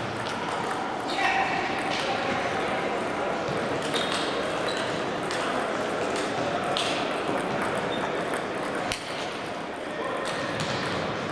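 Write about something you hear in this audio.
A table tennis ball clicks back and forth off paddles and the table.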